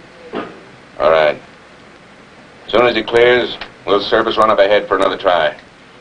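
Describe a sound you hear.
A man speaks tensely in short bursts nearby.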